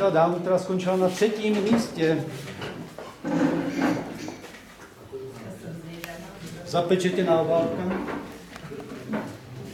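A man speaks with animation close by, in a room with some echo.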